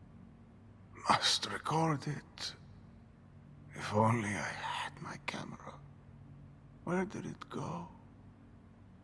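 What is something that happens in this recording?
A man speaks weakly and breathlessly.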